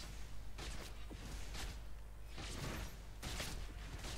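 Spell effects whoosh and crackle in a fantasy battle game.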